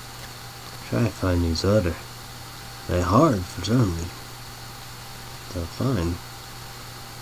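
A young man speaks briefly and calmly, close to a microphone.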